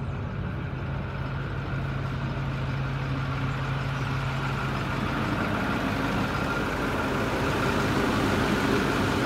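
A bus engine idles with a steady, low rumble close by.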